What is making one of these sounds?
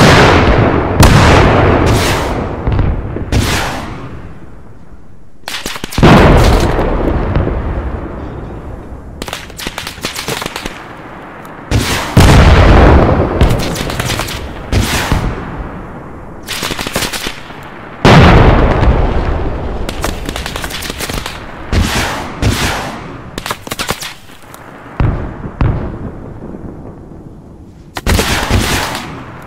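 A tank cannon fires with loud, booming blasts that roll away.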